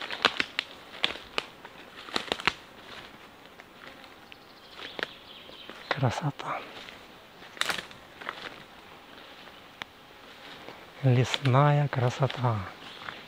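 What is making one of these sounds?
Twigs snap underfoot.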